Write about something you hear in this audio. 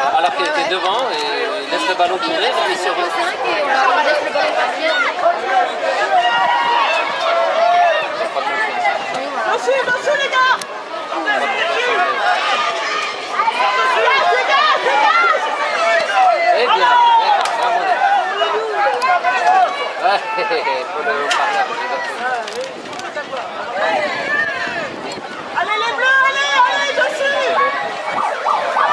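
Young children shout to each other outdoors on a football pitch.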